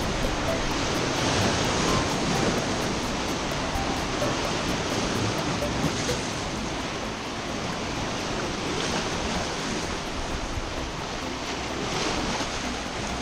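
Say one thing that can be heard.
Waves splash and wash over rocks close by, with water rushing and hissing steadily.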